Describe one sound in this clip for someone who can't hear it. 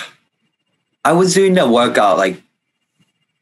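A young man speaks through an online call.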